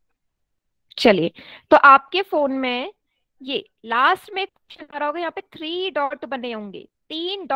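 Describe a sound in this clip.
A young woman speaks calmly through a headset microphone over an online call.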